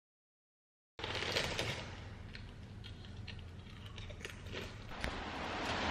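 A young woman crunches crisps.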